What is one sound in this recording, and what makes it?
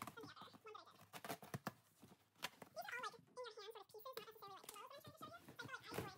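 Cardboard flaps creak and scrape as a box is pulled open.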